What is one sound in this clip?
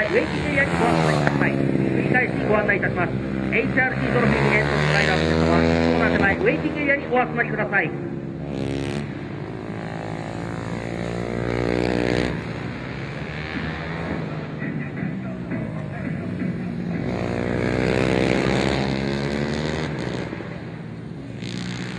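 A motorcycle engine roars and revs up and down as it races past.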